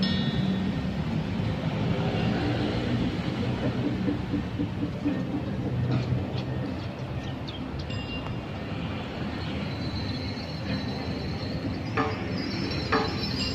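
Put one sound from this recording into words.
A small group of musicians plays traditional instruments outdoors.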